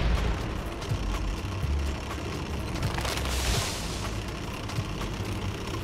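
Tank tracks clatter over rough ground.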